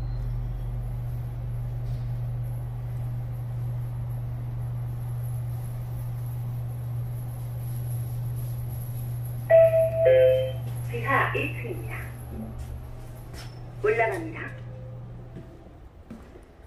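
An elevator machine hums steadily.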